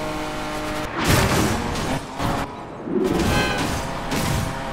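A car scrapes and crashes against other cars and a wall.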